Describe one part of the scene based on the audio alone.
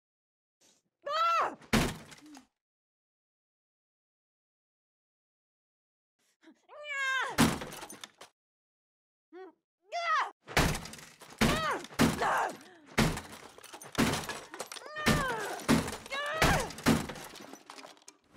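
A young woman grunts and strains with effort.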